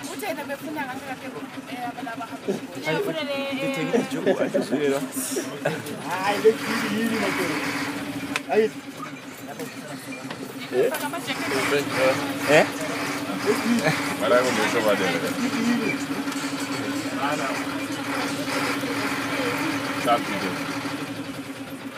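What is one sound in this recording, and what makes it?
Young men and women laugh and chatter loudly close by.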